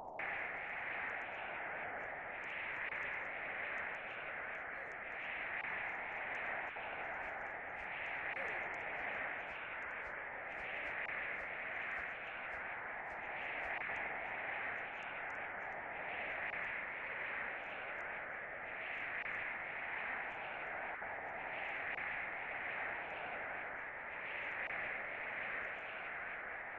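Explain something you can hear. A blizzard wind howls steadily, swelling and easing in slow gusts.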